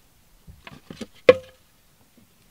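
A plastic cup drops and knocks on the floor.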